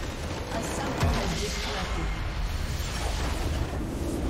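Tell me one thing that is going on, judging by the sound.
A building crumbles and explodes with a deep boom.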